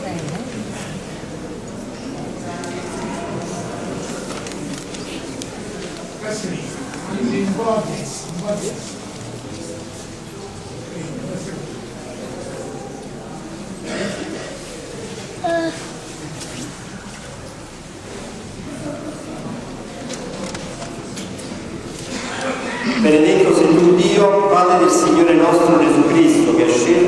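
A crowd of people murmurs and talks quietly in a large echoing hall.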